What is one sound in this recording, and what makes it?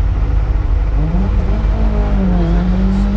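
An engine revs up and down near the end.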